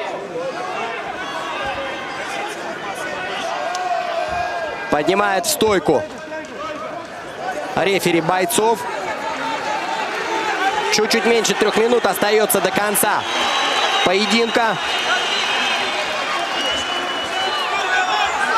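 A large crowd cheers and shouts in a big echoing hall.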